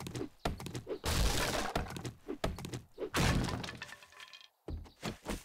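A club thuds against a wooden woodpile.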